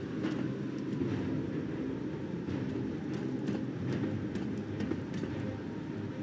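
Heavy footsteps clank on a metal rooftop.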